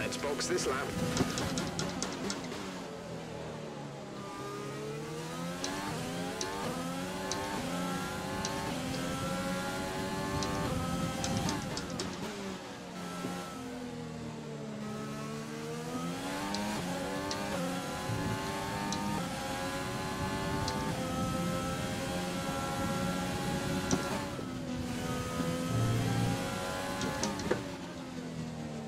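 A racing car engine roars at high pitch, dropping as it brakes and rising as it speeds up again through the gears.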